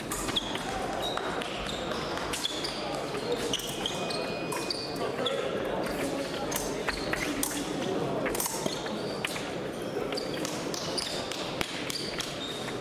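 Shoes squeak sharply on a hard floor.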